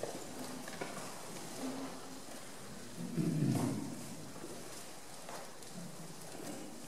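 A men's choir sings softly in a large echoing hall.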